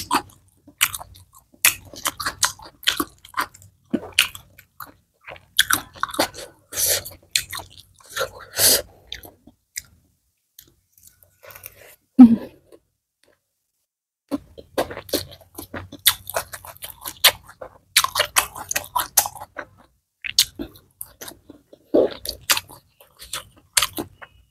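Dry leaves and crisp food rustle and crackle under fingers.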